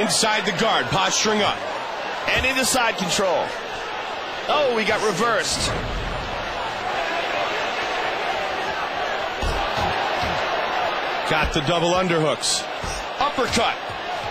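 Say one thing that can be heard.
Punches and kicks land with dull thuds.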